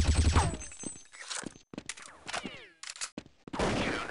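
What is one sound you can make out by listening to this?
A rifle is reloaded with metallic clicks and clacks.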